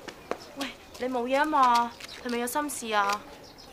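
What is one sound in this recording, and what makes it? A young woman speaks nearby in a lively, questioning tone.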